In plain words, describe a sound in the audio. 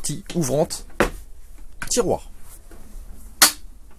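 A drawer slides open.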